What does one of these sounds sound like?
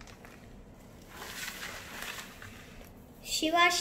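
A plastic sleeve rustles as a page of a folder is turned.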